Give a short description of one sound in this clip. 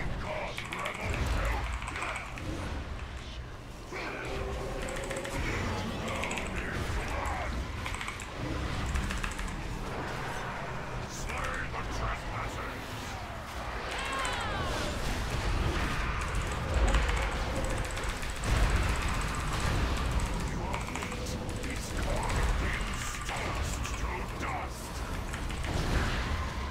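Magic spells whoosh and crackle in a game.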